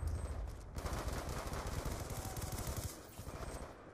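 Rapid gunfire rattles loudly, then stops.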